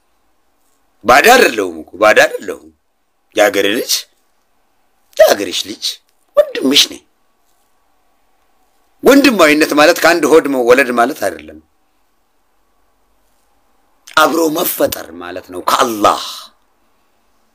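A man speaks close up in short, expressive bursts with pauses between them.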